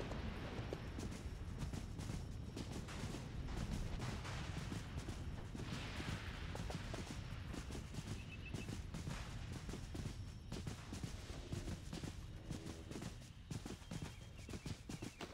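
A mount's hooves thud steadily as it runs along the ground.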